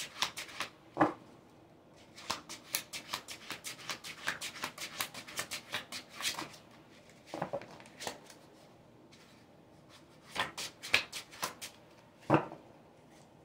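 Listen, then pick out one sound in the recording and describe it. Cards are laid down on a table with soft taps.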